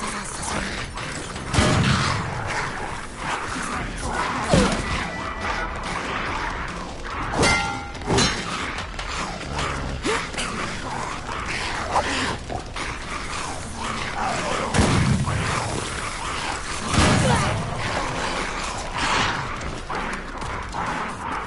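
Footsteps patter as a figure walks and runs.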